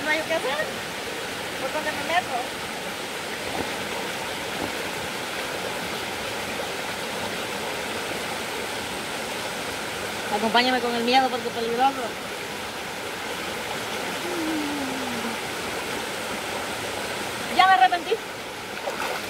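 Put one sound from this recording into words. A shallow stream rushes and gurgles over rocks outdoors.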